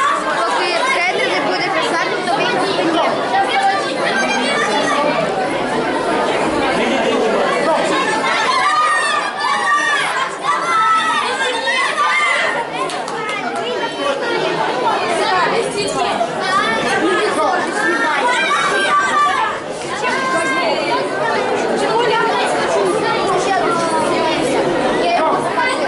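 A crowd of children and adults chatters and calls out steadily in a large echoing hall.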